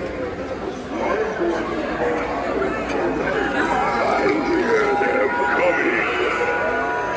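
Animated props play eerie sounds and music.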